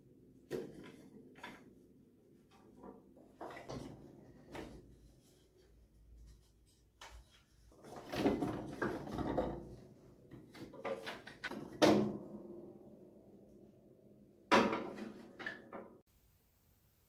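Piano strings ring softly.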